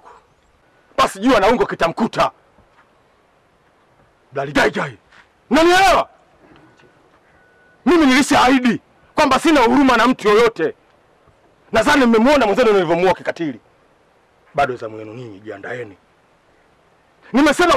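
A man speaks loudly and with animation nearby.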